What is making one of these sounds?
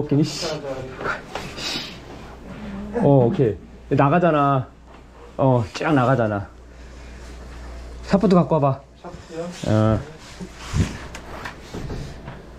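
A plastic hose scrapes and rubs against a tiled floor.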